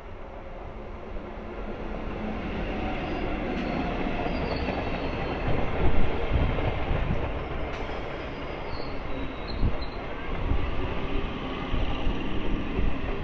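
A train rumbles and clatters loudly past on the tracks, close by.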